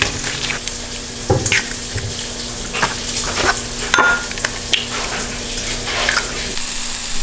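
An egg cracks against a bowl.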